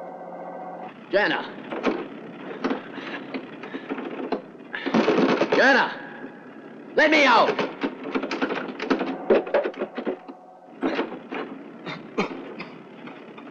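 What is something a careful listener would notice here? A man pounds on a door with his fist.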